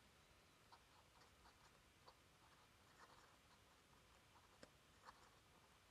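A pen scratches faintly on paper.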